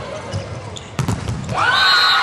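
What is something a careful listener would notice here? A volleyball is struck with a sharp thump.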